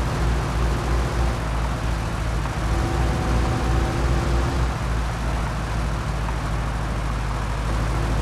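An old car engine rumbles steadily while driving.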